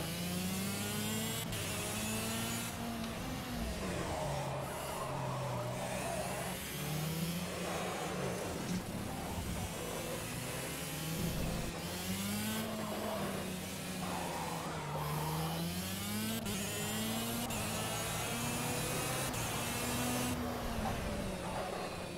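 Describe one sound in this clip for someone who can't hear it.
A kart engine buzzes and whines, rising and falling in pitch as it speeds up and slows down.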